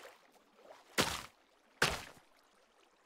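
A block cracks and breaks with a short sharp crunch.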